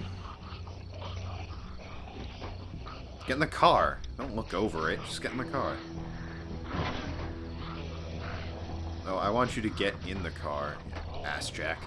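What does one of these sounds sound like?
A man grunts with effort while pushing.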